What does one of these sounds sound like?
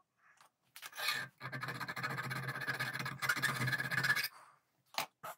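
A hand file rasps back and forth on steel.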